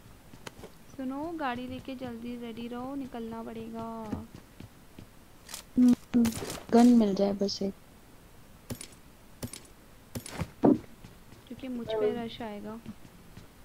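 A young woman talks casually into a microphone, close up.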